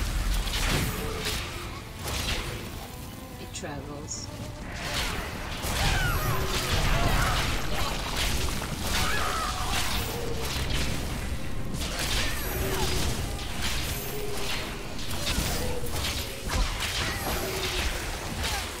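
Game spells crackle and explode in rapid bursts.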